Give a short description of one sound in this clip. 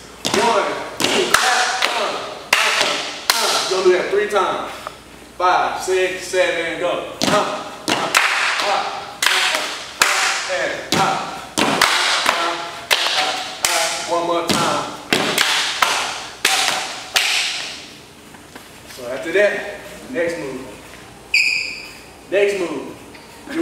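Shoes stomp and slap on a hard floor in quick rhythm.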